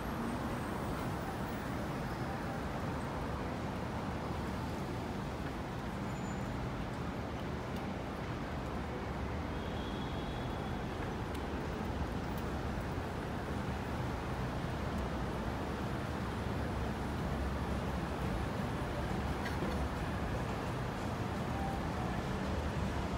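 Steady city traffic rumbles along a street outdoors.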